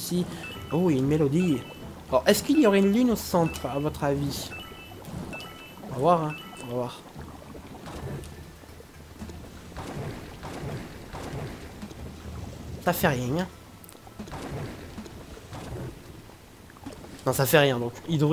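Splashing game sound effects play as a character swims through thick liquid.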